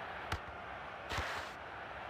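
A ball is kicked with a dull thud.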